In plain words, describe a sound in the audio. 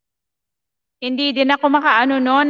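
A young woman sings close into a microphone.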